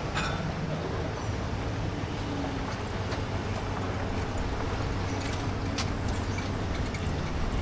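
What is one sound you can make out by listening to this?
A vehicle engine rumbles as it rolls past nearby.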